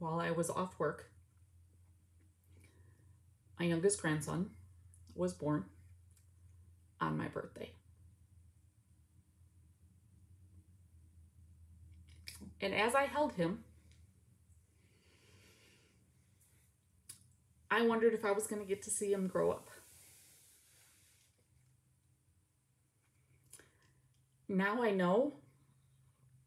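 A middle-aged woman speaks calmly and closely, in short phrases with pauses.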